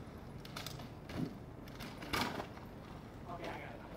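A bicycle lands hard on the ground with a thud.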